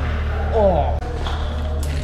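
Bicycle tyres roll over a concrete floor.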